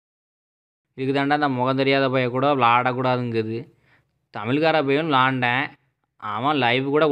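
A young man speaks close by, with animation.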